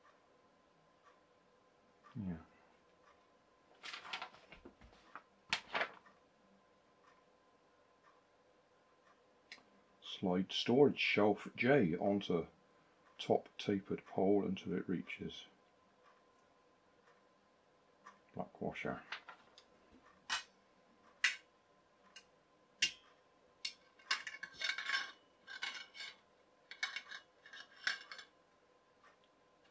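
Metal rods clink and rattle.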